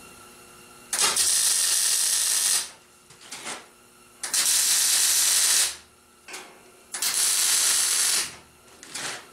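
A welding arc buzzes and crackles in steady bursts.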